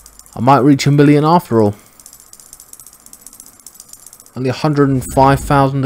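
Rapid electronic ticks sound as a score counts up.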